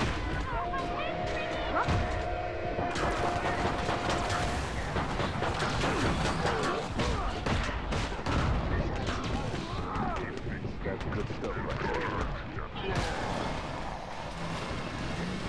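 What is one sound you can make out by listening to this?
Heavy explosions rumble and boom.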